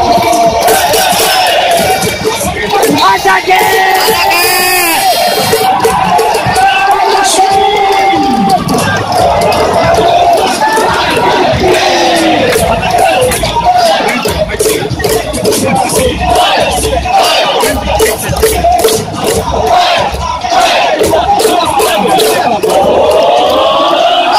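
Many fans clap in rhythm.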